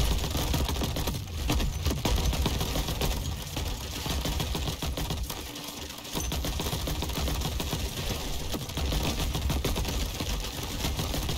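Explosions and blasts crackle and boom in rapid succession.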